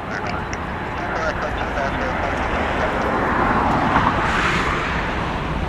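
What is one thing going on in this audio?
A large jet airliner taxis past with a loud, steady engine roar.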